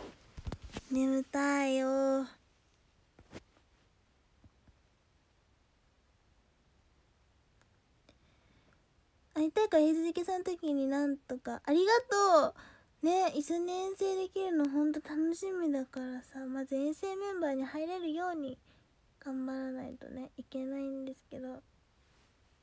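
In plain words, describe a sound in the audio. A young woman speaks brightly in a high voice, close to the microphone, with pauses.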